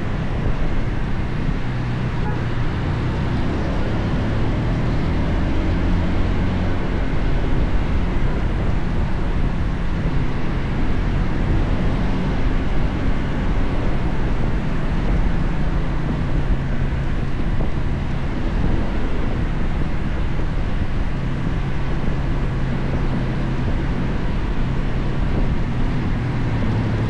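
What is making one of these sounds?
Wind rushes past close by.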